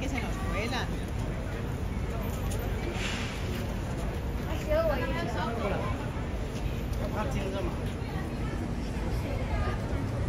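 Men and women chat nearby outdoors.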